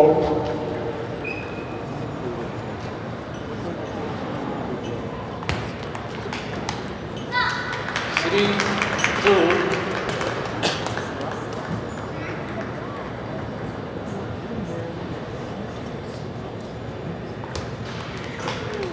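A table tennis ball clicks back and forth on paddles and table.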